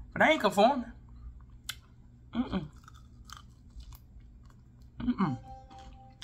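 A woman bites and chews food with crunchy mouth sounds.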